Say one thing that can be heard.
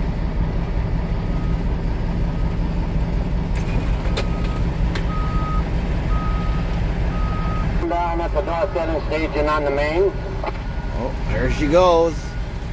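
A diesel engine rumbles steadily close by.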